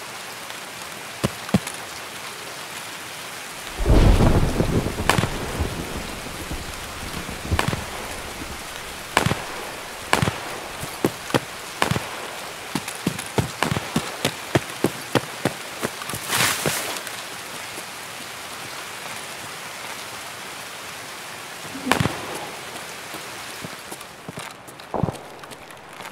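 Footsteps crunch on gravel and concrete.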